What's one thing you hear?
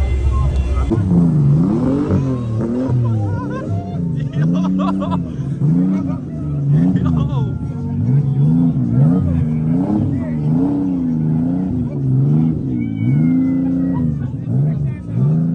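A sports car engine revs again and again, rising and falling.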